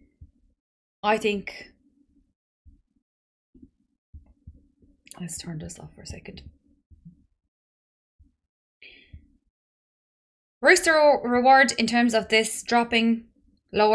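A young woman talks calmly and close to a microphone, with pauses.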